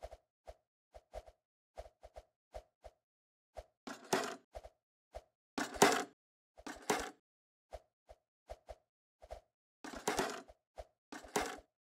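Quick footsteps patter on a running track.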